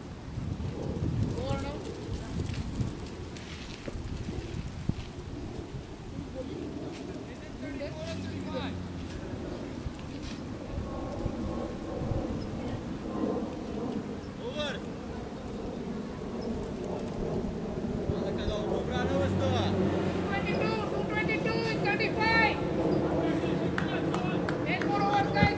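Men talk and call out to each other outdoors, nearby and at a distance.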